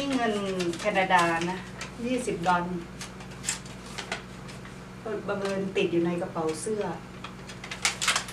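Paper bills rustle in a woman's hands.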